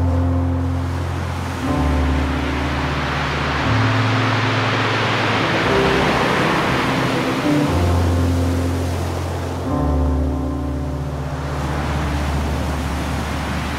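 Waves break and wash up onto a beach.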